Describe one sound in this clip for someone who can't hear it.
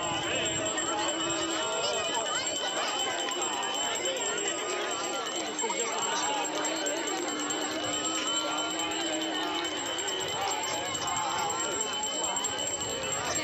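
A crowd of women chatter and sing nearby, outdoors.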